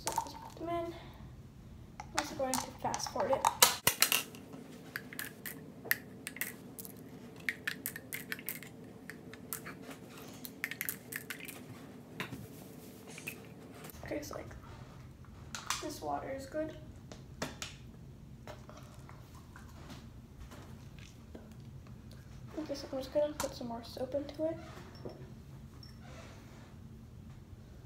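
A plastic water bottle crinkles and crackles in a girl's hands.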